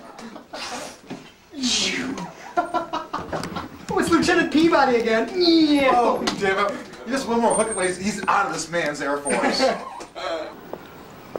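Young men talk and laugh loudly nearby.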